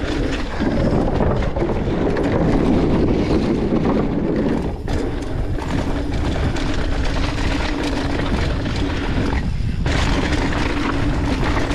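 Wind rushes past the microphone of a fast-moving rider.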